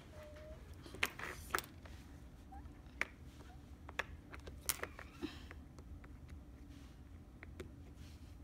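Silicone bubbles on a fidget toy pop with soft clicks as a finger presses them.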